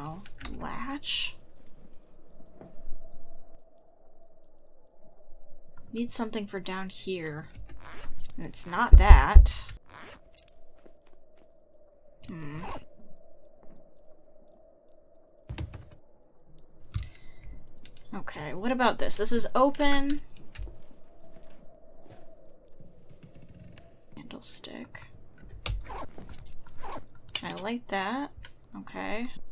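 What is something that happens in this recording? A young woman talks into a close microphone with animation.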